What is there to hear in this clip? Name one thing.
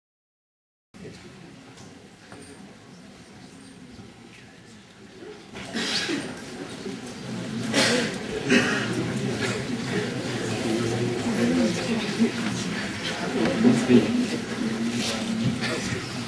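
A seated audience murmurs and chatters in a large room.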